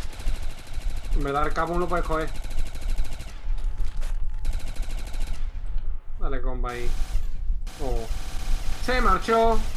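A gun fires rapidly.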